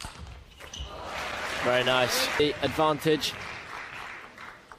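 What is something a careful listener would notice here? A crowd cheers and claps in a large hall.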